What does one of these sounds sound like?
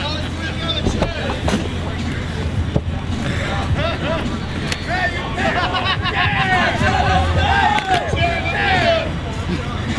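A metal folding chair clatters on a canvas floor.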